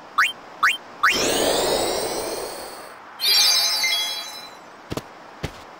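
A magic healing spell chimes and shimmers.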